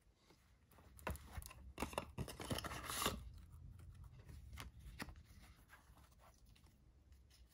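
Playing cards slide and riffle against each other.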